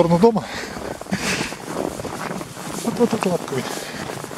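A small dog's paws crunch through snow.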